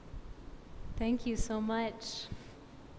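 A woman speaks briefly through a microphone in a large echoing hall.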